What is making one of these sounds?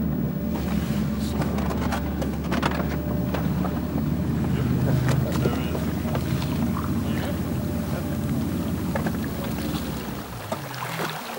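A boat engine rumbles steadily, then cuts out.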